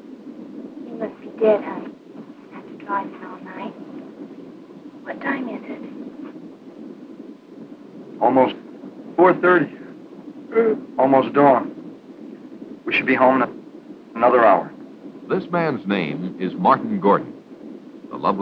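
A young woman speaks, whining and pleading, close by.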